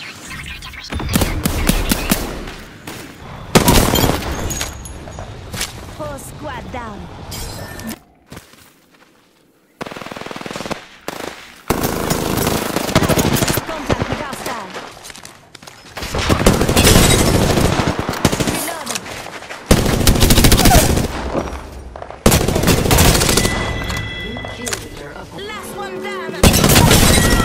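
Guns fire in loud rapid bursts.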